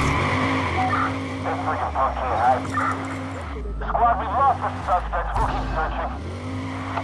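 Tyres squeal and screech on the road.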